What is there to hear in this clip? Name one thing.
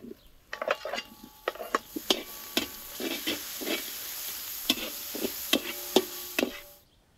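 A metal spatula scrapes and clatters in a pan.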